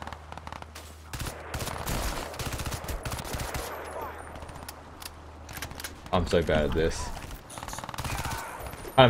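Bursts of rapid gunfire ring out.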